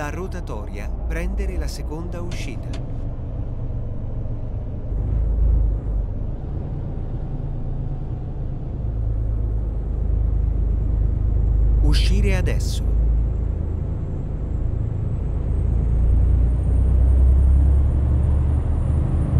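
A truck engine rumbles low and steady while driving.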